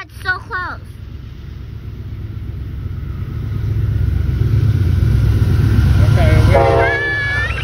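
A train rumbles closer along the tracks, growing louder.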